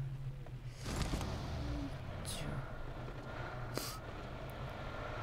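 A car engine runs and revs.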